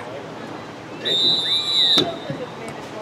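A referee blows a sharp whistle blast outdoors.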